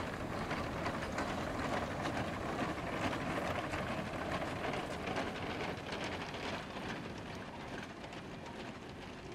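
A steam locomotive chuffs loudly in rapid beats as it passes close by, slowly fading.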